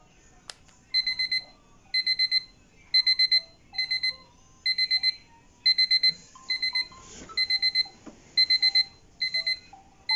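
A phone alarm beeps in quick repeated bursts.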